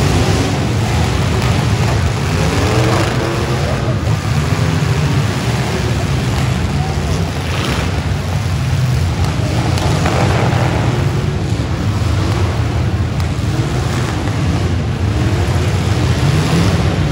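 A large crowd cheers and murmurs.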